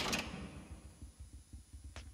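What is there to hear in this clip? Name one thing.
A key turns and a metal cell door clanks open.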